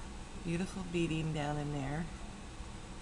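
An older woman speaks briefly and close up.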